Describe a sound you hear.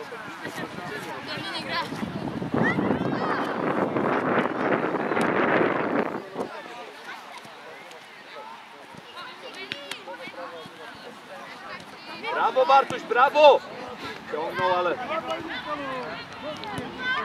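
Girls shout and call to each other across a football pitch outdoors.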